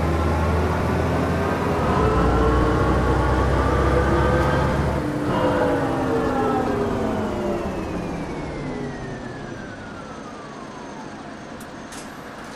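A bus engine drones loudly, then its pitch falls as the bus slows down.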